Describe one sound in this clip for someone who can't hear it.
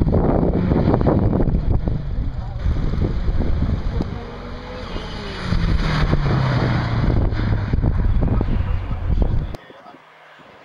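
A car engine roars loudly as the car races past.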